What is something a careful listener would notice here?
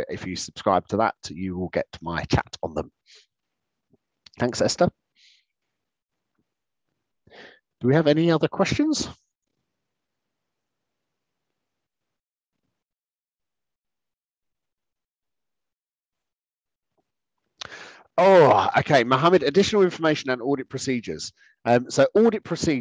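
A man speaks calmly through an online call, pausing now and then.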